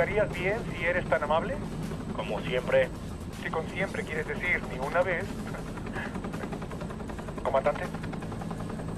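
A man speaks urgently over a headset radio.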